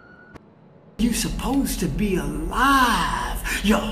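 An elderly man speaks with animation, close by.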